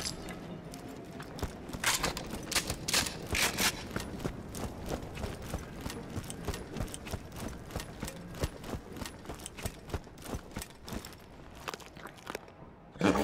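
Quick footsteps crunch over rough ground.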